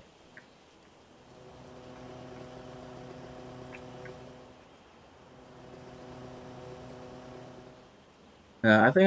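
A sport motorcycle engine hums, cruising along.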